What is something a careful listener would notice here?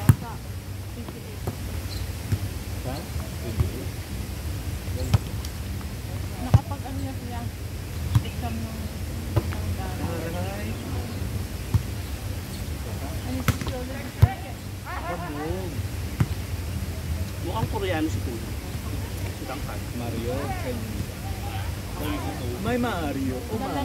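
A volleyball thumps as players hit it back and forth.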